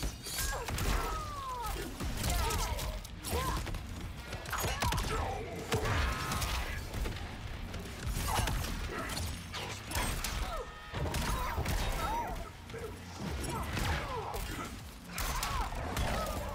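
Punches and kicks land with heavy, sharp thuds in a fast fight.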